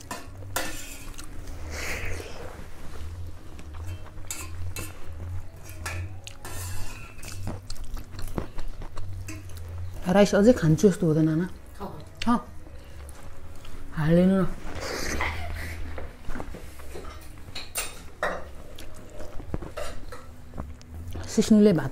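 A young man chews food noisily, close by.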